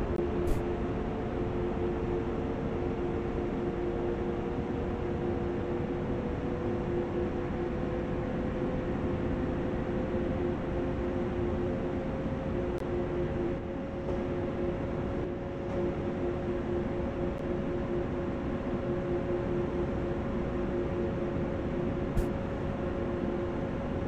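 An electric train engine hums and whines, rising slowly in pitch as the train speeds up.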